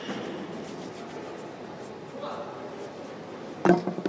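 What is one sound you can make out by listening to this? Hands rub together with a soft dry scuffing.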